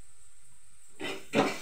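A metal pan clatters on a stove.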